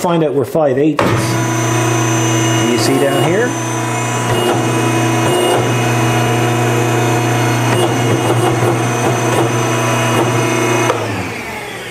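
A metalworking machine's motor hums steadily.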